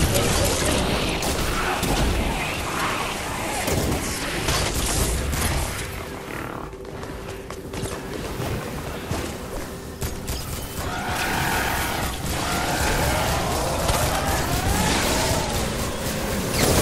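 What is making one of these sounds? Heavy blows land with loud thuds and crashes.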